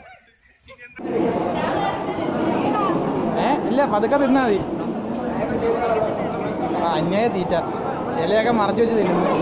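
Many people chatter in a busy, echoing hall.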